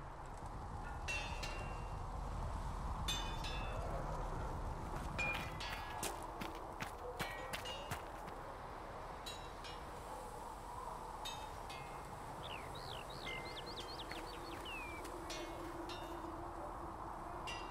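Footsteps crunch on gravel and snow.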